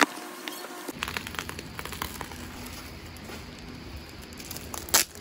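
Bubble wrap crinkles under fingers.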